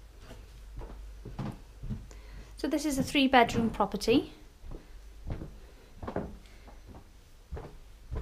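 Footsteps thud on carpeted stairs.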